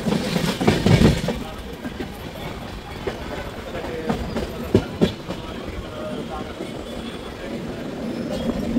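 A train rumbles along the tracks at speed.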